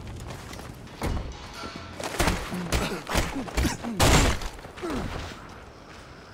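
Metal crashes and bangs in a series of hard impacts.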